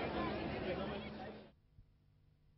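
A crowd of men and women talk and shout outdoors.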